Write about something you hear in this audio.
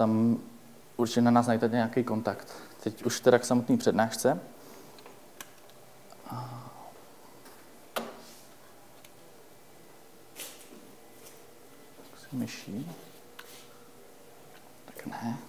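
A man speaks calmly to an audience in a room with some echo.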